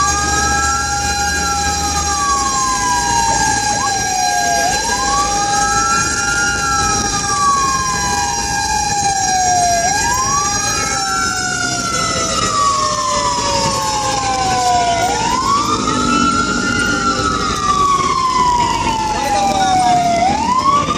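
A siren wails loudly nearby, rising and falling over and over.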